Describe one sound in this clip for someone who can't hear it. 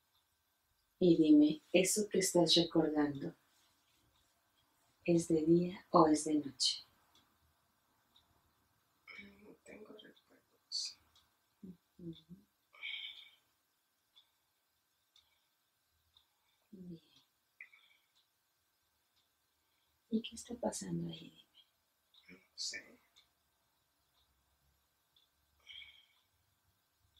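A woman speaks quietly and calmly close by, in short bursts with pauses.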